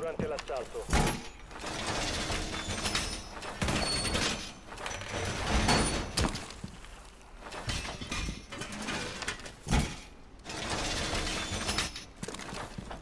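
Heavy metal panels clank and rattle as a wall is reinforced.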